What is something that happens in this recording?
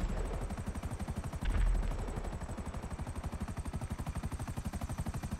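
Helicopter rotor blades thump rapidly and steadily overhead.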